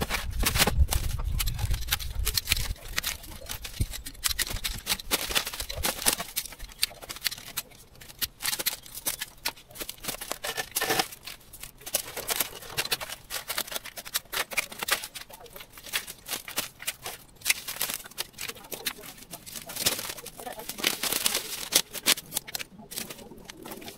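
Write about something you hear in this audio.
Weed stems snap and tear as they are pulled from the ground.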